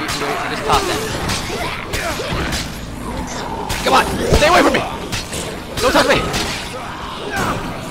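Blows thud and slash in a game fight.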